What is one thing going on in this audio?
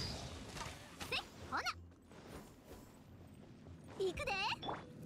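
A blade whooshes through the air.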